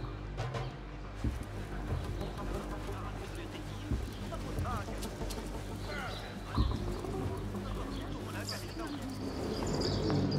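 Footsteps patter quickly over sand and wooden boards.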